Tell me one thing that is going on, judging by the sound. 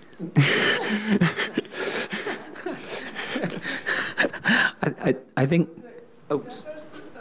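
A middle-aged man speaks with animation into a microphone in a large hall.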